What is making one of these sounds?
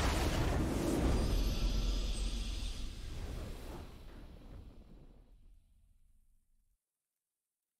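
A triumphant fanfare swells and then slowly fades away.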